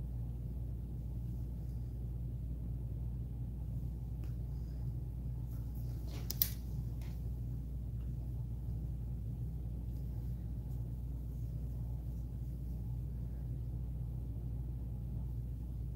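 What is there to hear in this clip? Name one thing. A crochet hook clicks softly against yarn.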